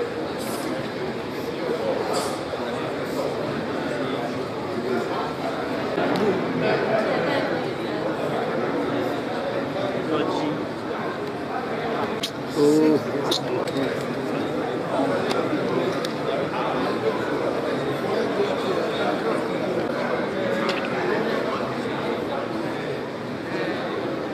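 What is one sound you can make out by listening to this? A crowd of men and women chatters in a large room.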